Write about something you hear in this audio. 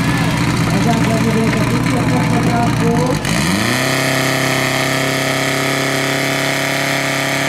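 A petrol pump engine roars loudly close by, revving up and then holding a steady high drone.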